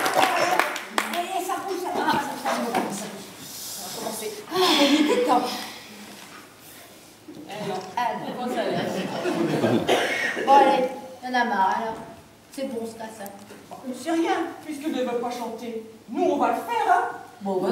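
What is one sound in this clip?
Older women read out lines in turn, heard from a short distance in an echoing hall.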